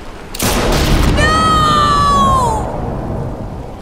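A young boy screams a long, drawn-out cry.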